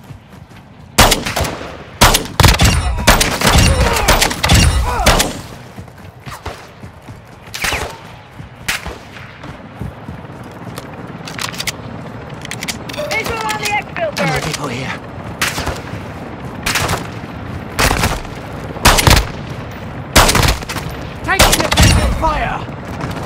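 Gunshots fire in sharp, rapid bursts close by.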